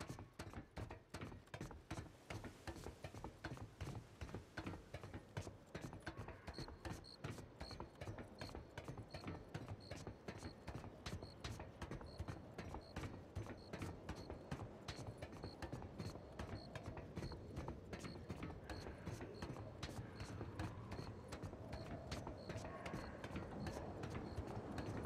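Boots clang steadily on the rungs of a metal ladder during a climb.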